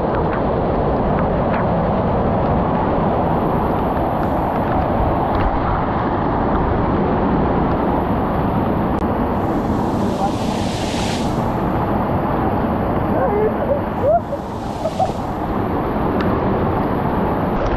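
A waterfall pours and splashes heavily close by.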